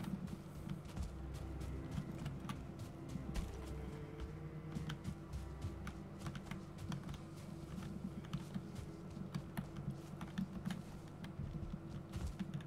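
Footsteps patter quickly through grass.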